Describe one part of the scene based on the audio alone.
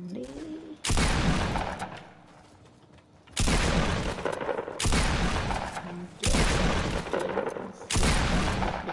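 Gunshots blast in loud bursts.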